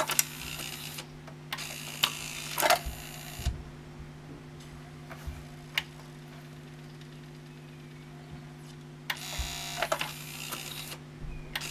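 A small motor whirs as a disc tray slides.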